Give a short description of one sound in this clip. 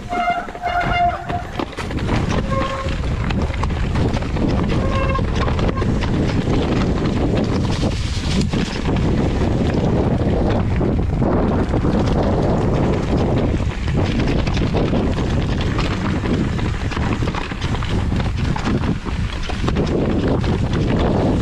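A bicycle rattles over bumps.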